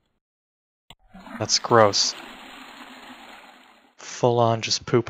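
A toilet flushes.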